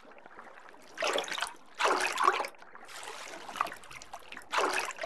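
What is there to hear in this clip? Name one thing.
Sharks bite and thrash with loud splashing bursts.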